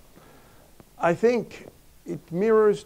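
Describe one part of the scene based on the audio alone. A middle-aged man speaks calmly into a lapel microphone.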